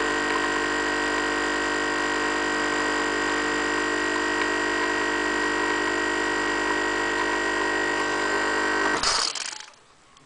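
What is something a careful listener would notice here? An espresso machine hums and buzzes loudly, then abruptly stops.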